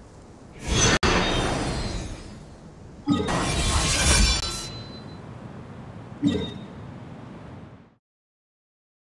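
Game sound effects whoosh and swell in loud bursts.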